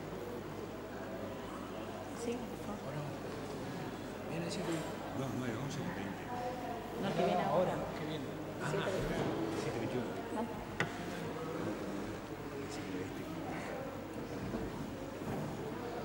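Several men and women murmur and talk quietly in a large, echoing room.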